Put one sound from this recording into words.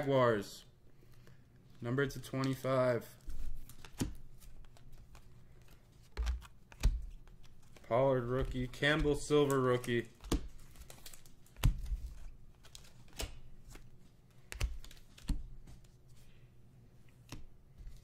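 Trading cards rustle and slide as a hand flips through them.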